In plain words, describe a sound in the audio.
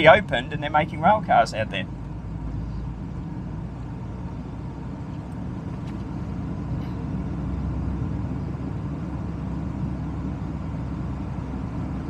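A car drives along a road with a steady low rumble of tyres and engine.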